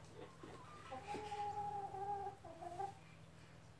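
A hen clucks softly.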